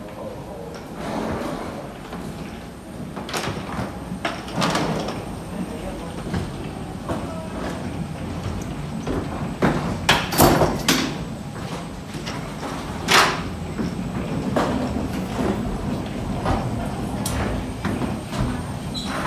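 Suitcase wheels roll and rattle over a hard floor.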